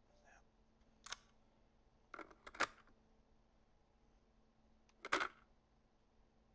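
Short electronic menu sounds chime and click.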